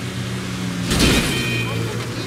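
A car bumps against another car with a sharp thud.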